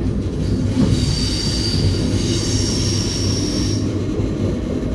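Train wheels squeal shrilly on the rails.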